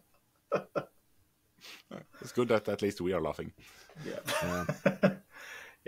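Men laugh over an online call.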